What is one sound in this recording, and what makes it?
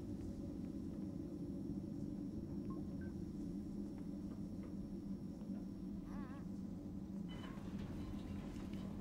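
A low mechanical hum drones steadily.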